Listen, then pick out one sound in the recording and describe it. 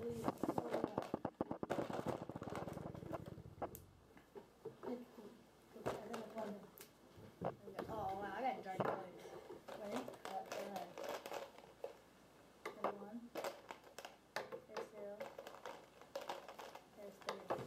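A plastic cup of markers rattles and clatters on a table.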